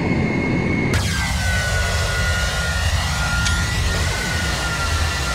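An airliner's jet engines roar and whine as it flies past.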